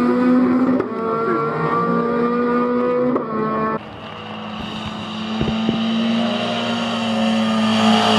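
A race car engine roars at high revs.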